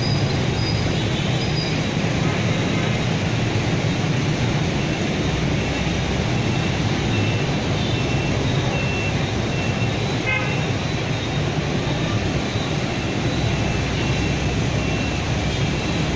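Horns beep now and then from the traffic.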